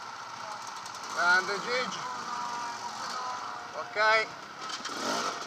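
A dirt bike engine revs sharply in short bursts.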